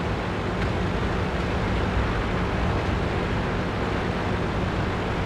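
A tank engine rumbles steadily as the tank drives forward.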